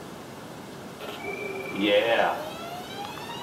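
A video game's electronic goal horn sounds through a television speaker.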